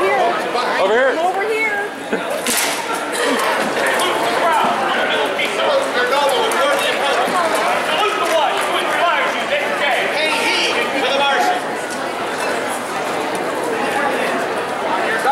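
A crowd of men and women chatters throughout a large echoing hall.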